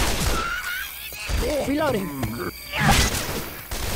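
An axe chops into bodies with heavy, wet thuds.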